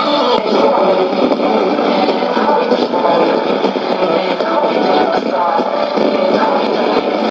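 A shortwave radio plays a distorted, crackling broadcast through its small loudspeaker.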